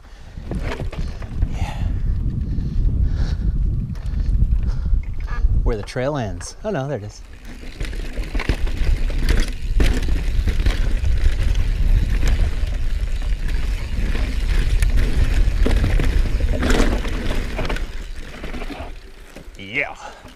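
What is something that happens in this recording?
Mountain bike tyres roll and crunch over rough grassy ground.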